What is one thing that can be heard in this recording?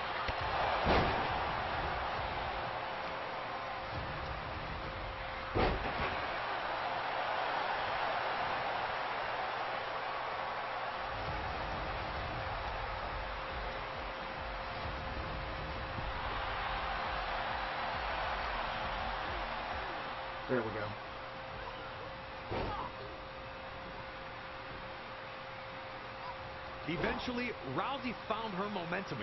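A large crowd roars and cheers throughout.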